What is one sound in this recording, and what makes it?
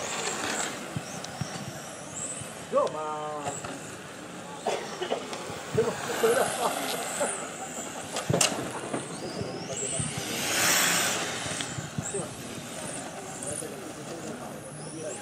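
A small remote-control car's electric motor whines high, rising and falling as it speeds around.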